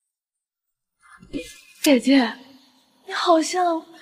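A young woman speaks close by in a teasing, lively voice.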